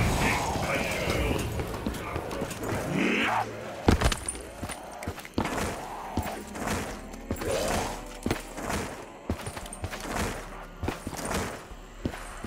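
Footsteps tread steadily over rough ground.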